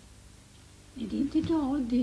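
An elderly woman speaks up in a questioning tone.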